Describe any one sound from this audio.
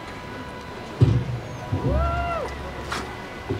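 A microphone thumps and rustles as it is handled.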